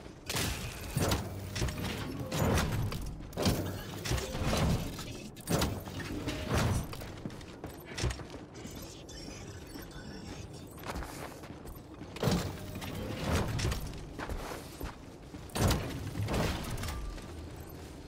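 Heavy metal shells clank and thud as they are loaded into a rack.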